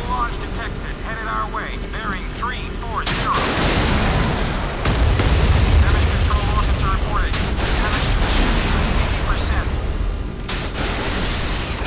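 Shells splash heavily into water.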